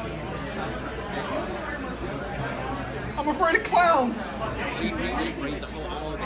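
A crowd chatters indoors.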